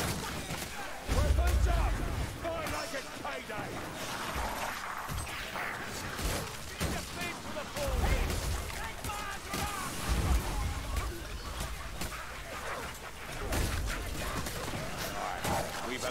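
Heavy blades hack and slash with repeated thuds.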